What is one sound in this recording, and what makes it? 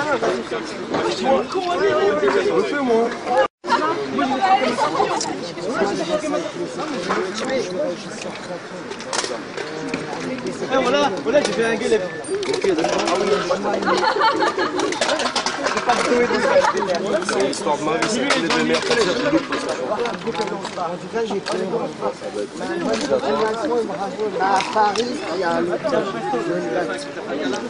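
Several men talk with animation close by, outdoors.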